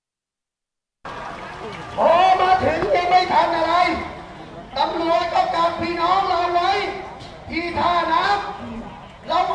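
A large crowd sings together outdoors.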